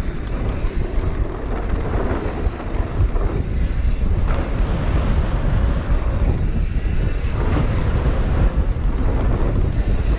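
Bike tyres clatter over wooden boards.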